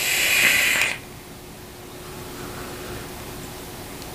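A man exhales a breath of vapour softly.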